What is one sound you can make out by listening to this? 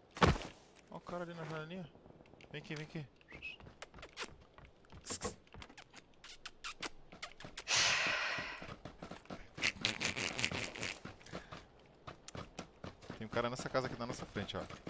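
A young man talks and laughs close to a headset microphone.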